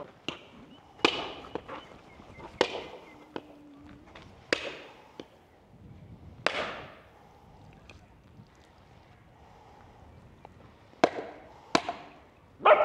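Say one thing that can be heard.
A coconut knocks hard against a stone, again and again.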